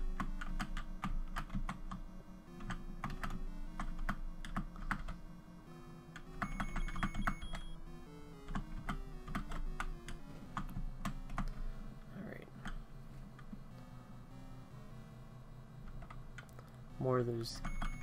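Chiptune video game music plays steadily with a bouncy melody.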